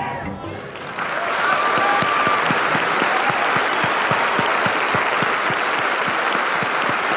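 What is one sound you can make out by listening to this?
A large audience applauds in a big echoing hall.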